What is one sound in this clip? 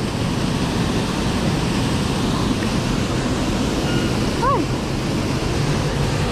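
A waterfall roars steadily into a pool.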